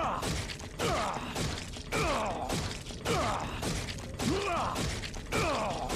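A knife slashes repeatedly.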